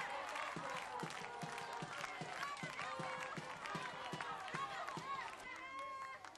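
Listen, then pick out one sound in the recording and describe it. Hands clap in a steady beat.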